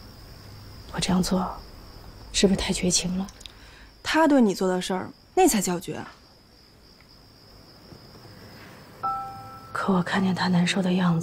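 A young woman speaks quietly and earnestly.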